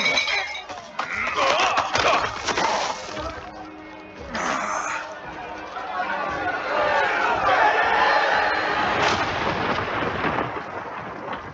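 A crowd shouts angrily.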